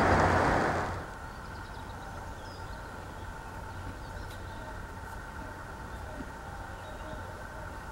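A horse tears and chews grass.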